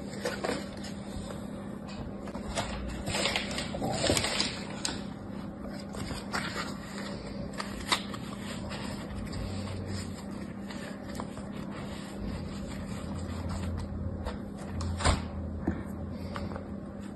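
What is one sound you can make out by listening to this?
Fingers press and squish soft sand with a quiet crunch.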